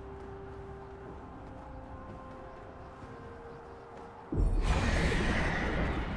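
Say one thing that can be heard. Video game sound effects play quietly, then burst out loudly.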